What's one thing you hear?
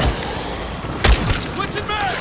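A single heavy gunshot booms.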